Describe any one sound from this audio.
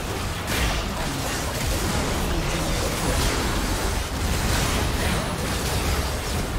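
Game spells blast and crackle in a busy battle.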